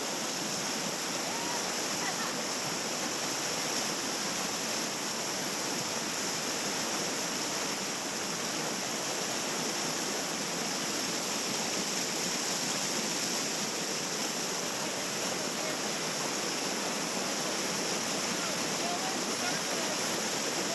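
Whitewater rushes and roars close by, steady throughout.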